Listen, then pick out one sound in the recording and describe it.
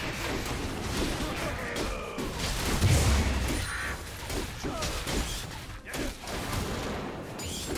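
Blows and impacts thud repeatedly.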